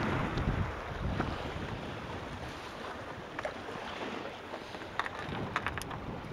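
Waves wash and splash against rocks close by.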